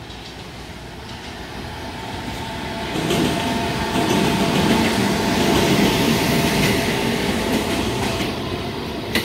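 An electric locomotive hums and roars as it passes at speed.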